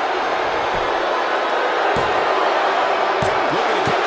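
A referee slaps the mat while counting.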